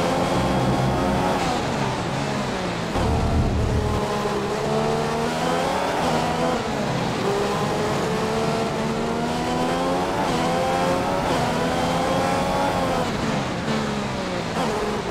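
A racing car engine screams, rising and falling in pitch as it shifts gears and slows for corners.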